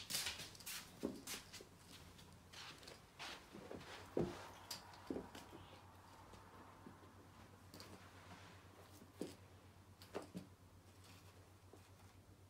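A cat's paws thump softly on carpet as it pounces.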